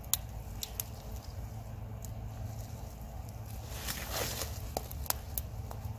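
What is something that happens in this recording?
Soil and mulch rustle as a plant is pulled up by hand.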